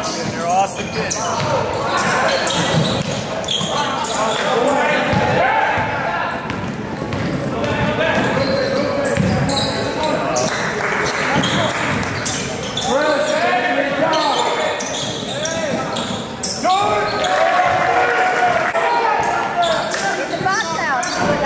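Spectators talk and call out nearby.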